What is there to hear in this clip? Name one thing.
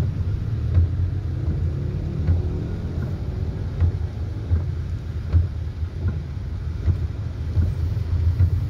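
Rain patters on a plastic windscreen.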